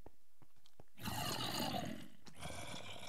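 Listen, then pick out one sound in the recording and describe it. Zombies groan nearby.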